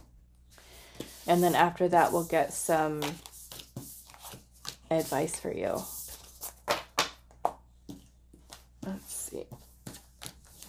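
Cards slide and tap softly on a table.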